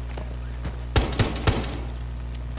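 A rifle fires two quick shots indoors.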